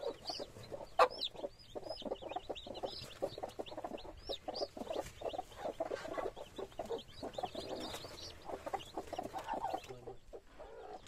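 Many chicks peep shrilly and constantly up close.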